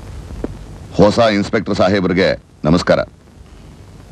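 A man speaks politely.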